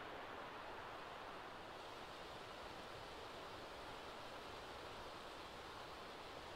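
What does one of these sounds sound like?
Steady rain falls and patters.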